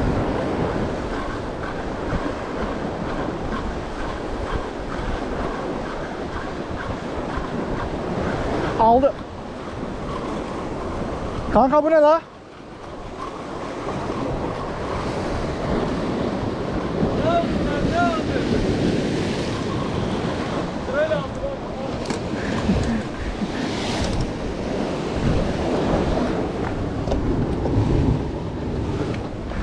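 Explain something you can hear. Waves wash and break against rocks close by.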